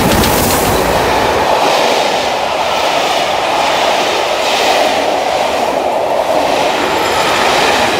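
Train wheels clatter rhythmically over the rails as carriages roll past.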